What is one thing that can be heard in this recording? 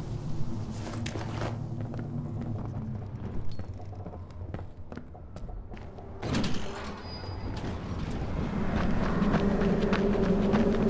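Quick footsteps and soft thuds sound as someone climbs and runs over wooden boards.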